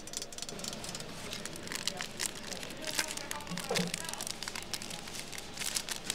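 A plastic wrapper crinkles as a hand handles it.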